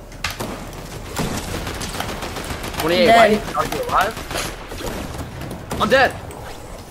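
Keyboard keys click and clatter rapidly.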